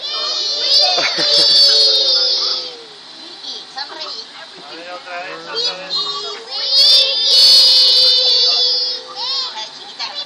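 Young girls shout and cheer together, close by.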